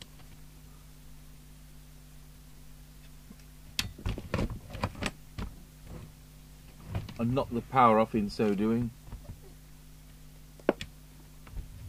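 A plug clicks into a socket.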